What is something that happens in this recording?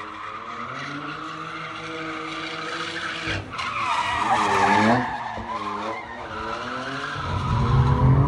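Tyres screech on pavement.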